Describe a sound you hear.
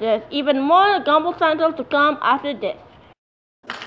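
A cartoon boy speaks excitedly into a microphone.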